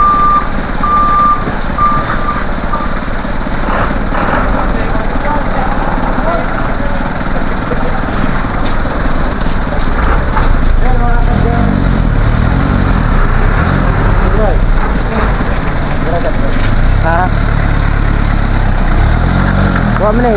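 A truck engine idles with a steady low rumble.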